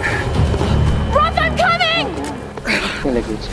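A young woman shouts urgently.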